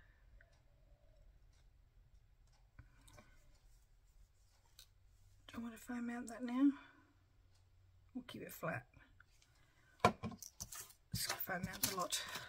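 Paper rustles and crinkles as it is handled.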